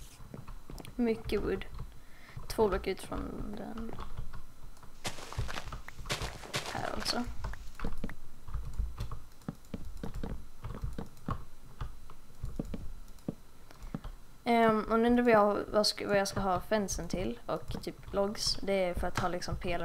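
A boy talks with animation close to a headset microphone.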